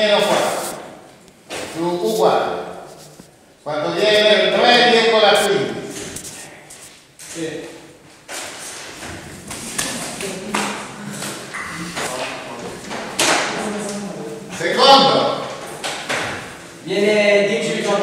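An elderly man speaks calmly, lecturing in a room with some echo.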